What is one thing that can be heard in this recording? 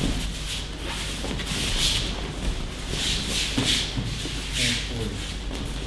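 Bodies thump onto padded mats in a large echoing hall.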